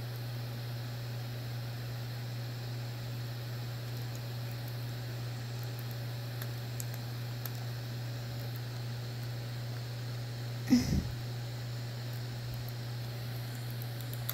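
Buttons click softly under thumbs.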